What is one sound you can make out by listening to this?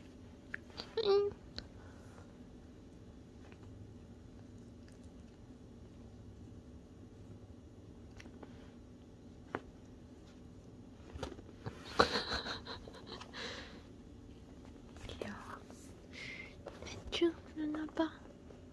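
A cat meows briefly.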